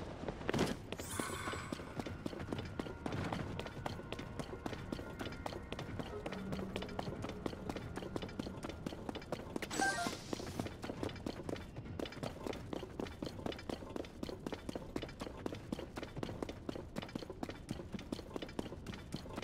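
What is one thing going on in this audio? Quick footsteps patter over soft earth and stones.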